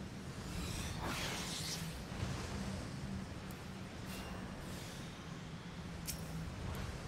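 Fiery spells whoosh and crackle in a game battle.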